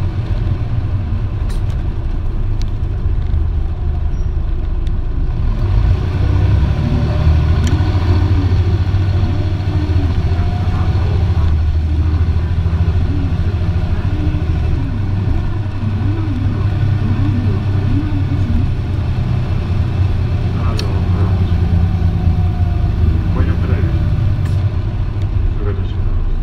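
A bus engine idles with a deep, steady rumble.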